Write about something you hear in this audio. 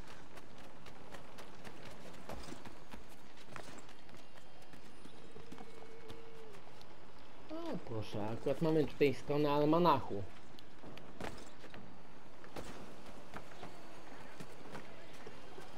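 Quick footsteps patter across hard ground.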